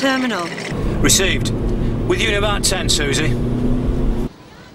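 A man talks on a phone.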